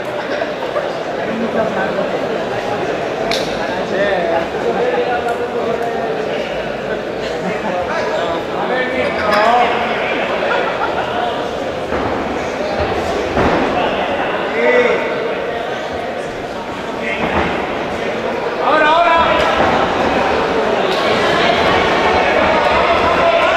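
A crowd of spectators shouts and cheers in an indoor hall.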